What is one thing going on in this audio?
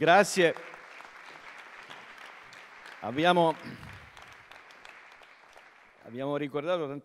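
A small group of people applauds.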